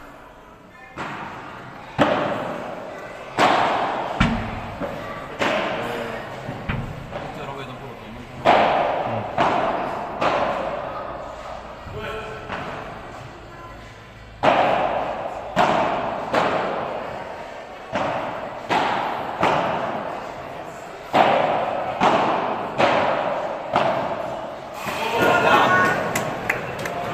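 Padel rackets strike a ball with sharp pops that echo in a large indoor hall.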